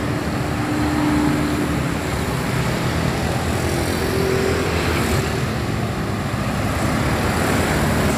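Motorcycle engines hum and buzz as they ride past close by.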